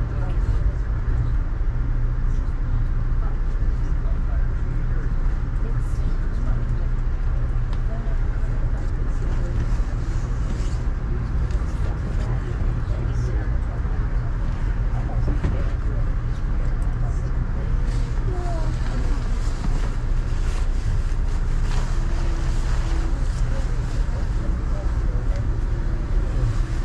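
Rain patters on a window.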